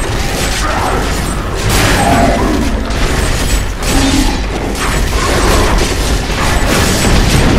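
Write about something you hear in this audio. Magic spells crackle and burst in a fast fight.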